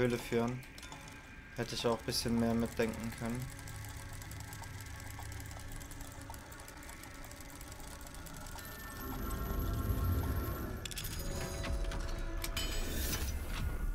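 Metal gears and dials click and turn in a mechanism.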